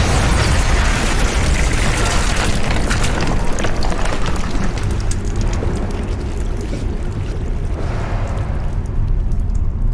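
A deep rumble of collapsing debris rolls on and on.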